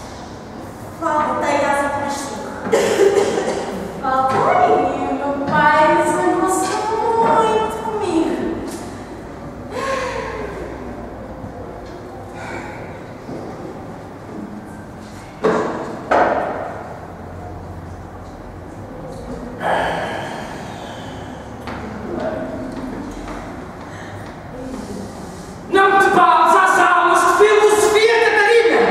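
A young woman speaks with strong feeling into a microphone, her voice filling an echoing room.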